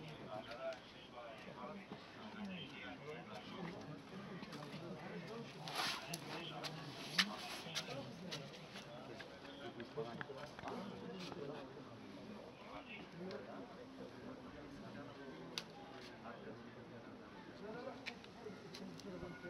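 Several men talk quietly nearby outdoors.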